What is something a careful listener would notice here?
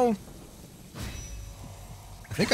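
Blades swish through the air in a fight.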